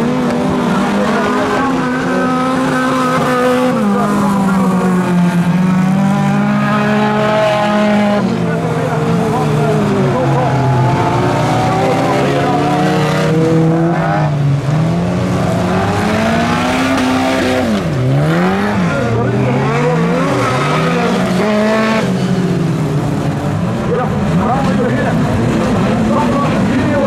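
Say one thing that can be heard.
Several car engines roar and rev as the cars race past.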